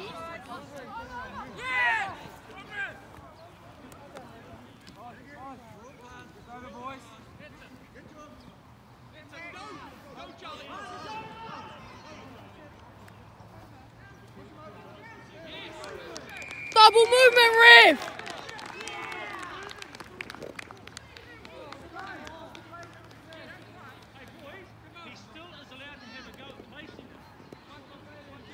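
Young players call out to each other across an open field outdoors.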